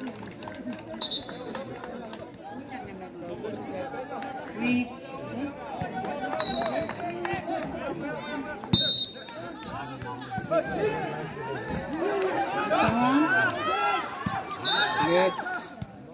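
A referee blows short blasts on a whistle.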